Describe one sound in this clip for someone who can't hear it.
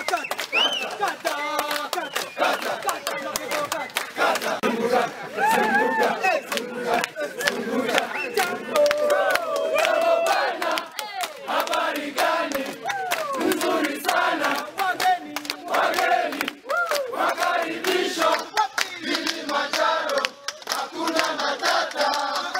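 A crowd cheers and shouts with excitement.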